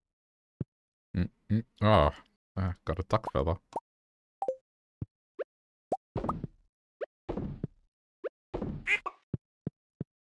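Short game chimes and pops sound as items are picked.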